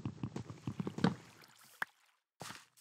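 A block breaks with a crumbling burst.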